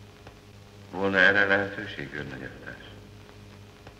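A younger man asks a question calmly.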